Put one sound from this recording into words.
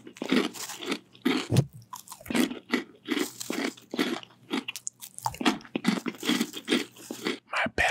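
Crunchy snacks rustle and crackle close to a microphone.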